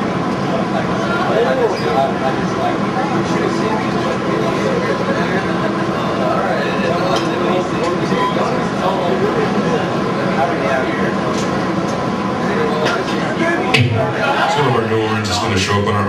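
A man growls into a microphone through loudspeakers.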